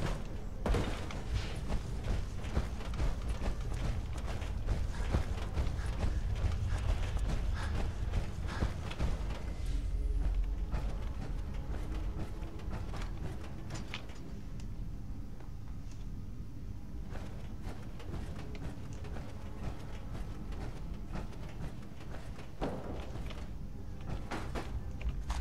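Heavy metal footsteps clank and thud on a hard floor.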